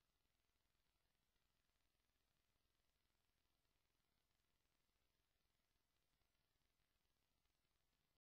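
A record turntable spins with a faint, steady low rumble.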